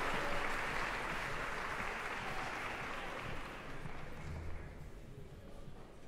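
An audience applauds in a large echoing hall and the applause fades.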